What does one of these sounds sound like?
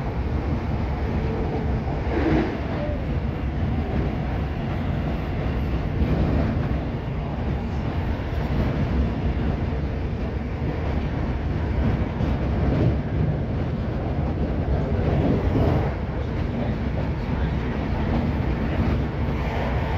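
A train rumbles and rattles steadily along the tracks, heard from inside a carriage.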